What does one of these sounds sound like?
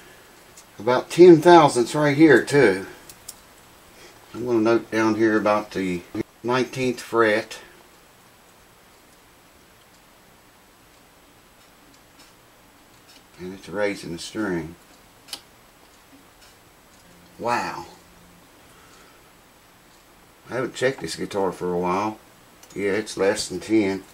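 An elderly man talks calmly close by, in short bursts with pauses.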